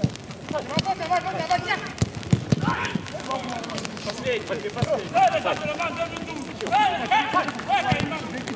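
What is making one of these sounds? Men shout and call out to each other across an open outdoor pitch.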